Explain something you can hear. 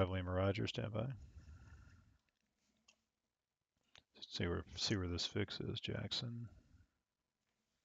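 A young man speaks calmly into a headset microphone, close up.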